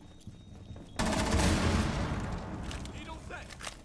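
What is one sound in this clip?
Gunfire bursts loudly nearby.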